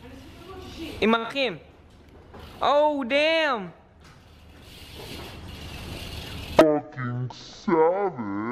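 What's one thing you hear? Bicycle tyres roll over concrete.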